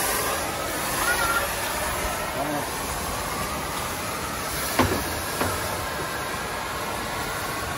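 A fogging machine engine roars and hisses steadily.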